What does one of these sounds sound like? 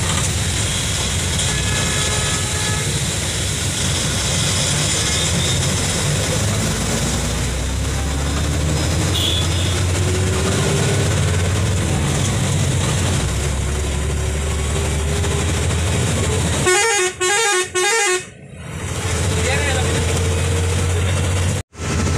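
A vehicle's engine rumbles steadily while driving along a road.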